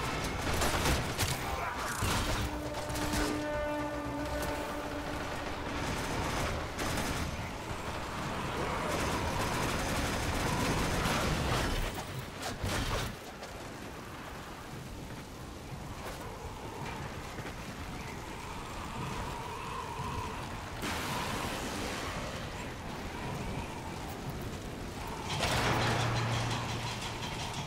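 Impacts and explosions burst repeatedly.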